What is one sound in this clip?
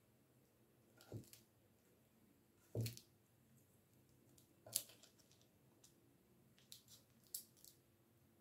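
A small knife cuts through a sheet of wax with soft taps and scrapes.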